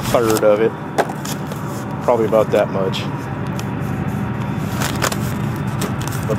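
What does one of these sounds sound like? A paper packet crinkles as it is torn and shaken.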